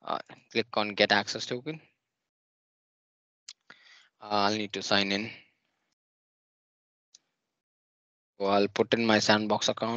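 A young man speaks calmly and closely into a microphone, in short bursts with pauses.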